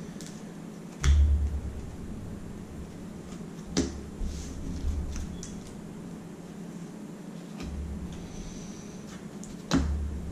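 Playing cards tap down on a table with soft clicks.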